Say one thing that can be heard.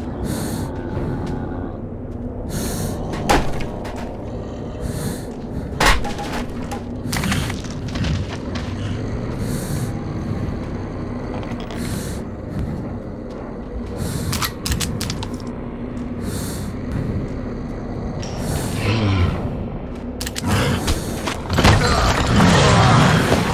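Footsteps crunch slowly over rubble and debris.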